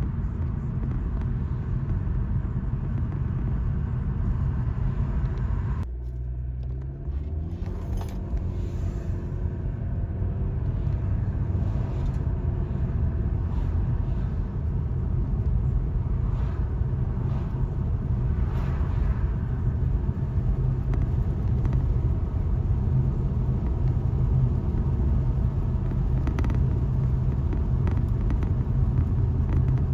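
A car hums steadily from inside as it drives along a road.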